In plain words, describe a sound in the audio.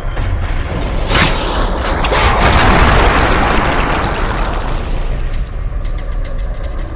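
A huge stone boulder rolls and rumbles loudly.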